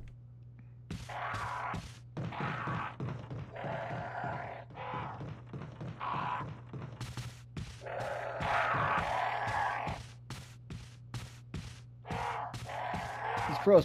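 Footsteps thud on wooden stairs and floorboards.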